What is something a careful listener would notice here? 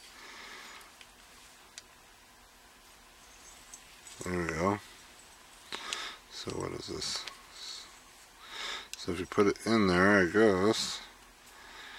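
Metal parts of a hand tool click and clink.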